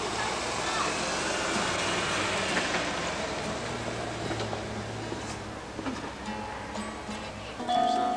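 A guitar is strummed outdoors.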